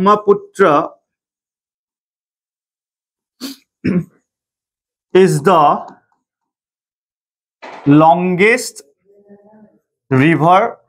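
A young man speaks calmly in short phrases, close to a microphone.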